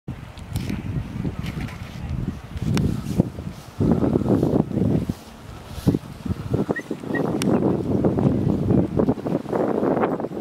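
Wind buffets loudly outdoors in gusts.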